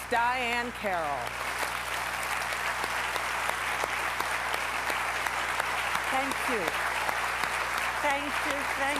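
An audience claps and cheers loudly in a large hall.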